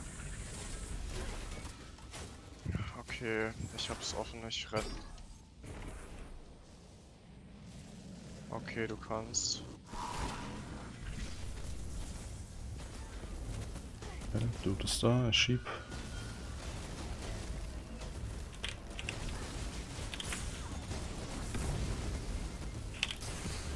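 Energy weapons fire in short bursts.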